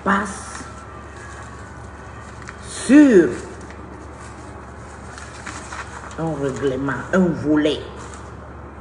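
A middle-aged woman speaks calmly and close to the microphone, in short bursts.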